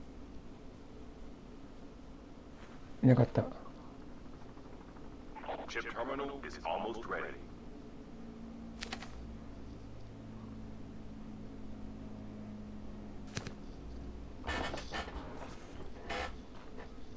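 Footsteps thud across a hollow floor.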